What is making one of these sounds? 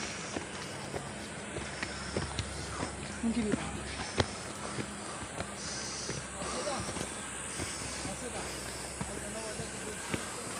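Footsteps crunch and scuff on a dirt and stone path.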